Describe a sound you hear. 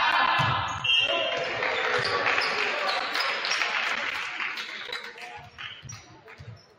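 A small crowd cheers and claps after the rally.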